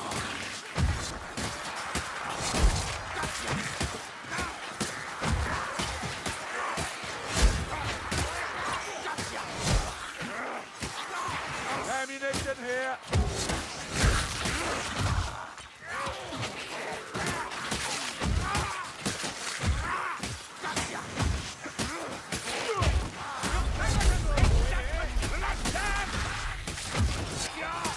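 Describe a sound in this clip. Weapons slash and thud against bodies in rapid blows.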